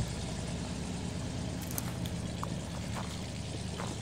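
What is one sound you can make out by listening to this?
Footsteps run through dry brush.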